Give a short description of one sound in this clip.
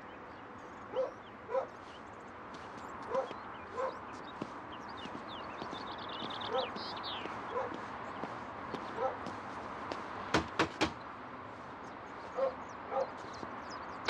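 Footsteps tap on pavement at a steady walking pace.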